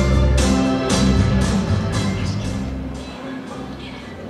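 Music plays through loudspeakers and fades out.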